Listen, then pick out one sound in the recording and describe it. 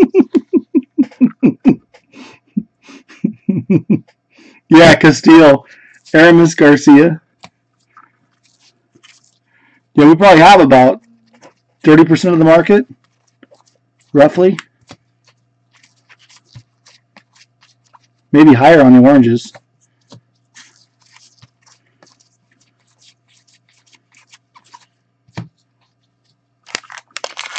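Trading cards rustle and slap softly as they are shuffled by hand.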